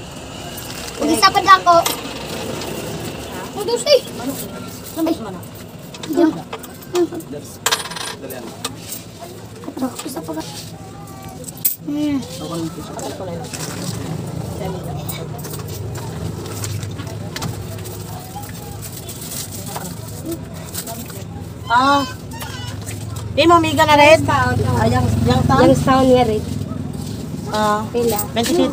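A woman talks nearby in a casual way.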